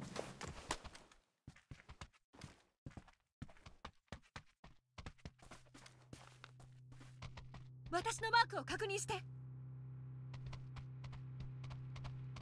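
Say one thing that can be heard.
Footsteps crunch quickly on dry ground.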